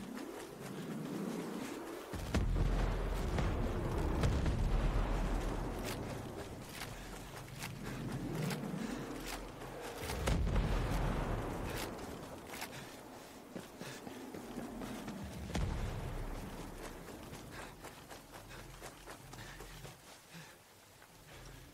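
Footsteps crunch and rustle through grass and dirt at a quick pace.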